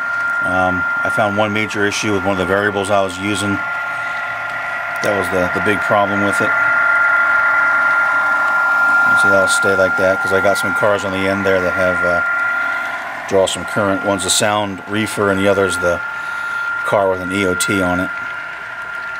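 A model train horn blows in repeated long and short blasts.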